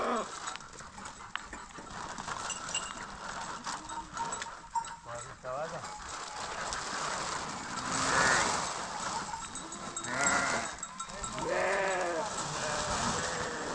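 A plastic sheet rustles and crinkles as it is pulled.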